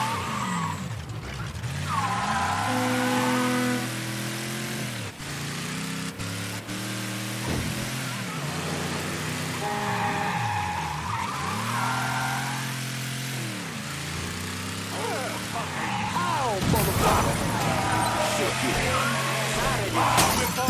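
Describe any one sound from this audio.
A car engine revs up and down repeatedly as it speeds along.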